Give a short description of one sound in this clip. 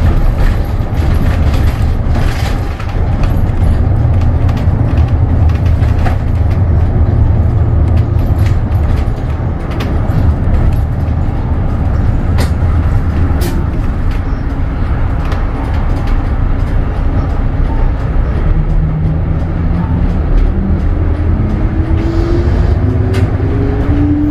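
Small rattles and clicks sound inside a moving bus.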